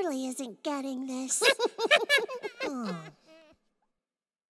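A young girl sings brightly and playfully.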